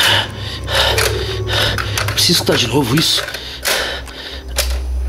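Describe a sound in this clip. Buttons click on a cassette player.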